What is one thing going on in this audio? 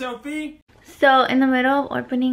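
A young woman talks animatedly up close.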